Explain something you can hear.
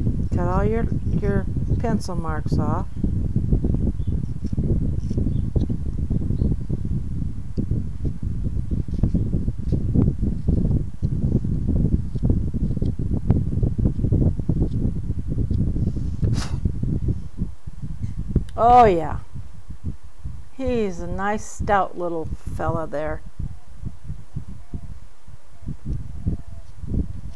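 A small knife scrapes and shaves wood up close.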